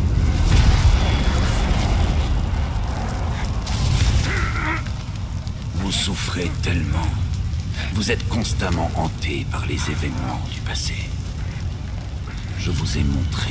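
Fire roars and crackles loudly.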